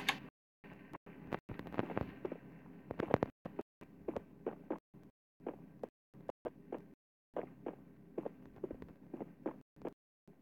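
Footsteps thud on hard ground at a steady walking pace.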